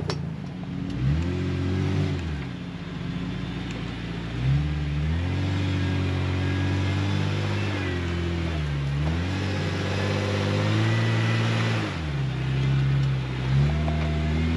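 An off-road vehicle's engine revs up and down repeatedly.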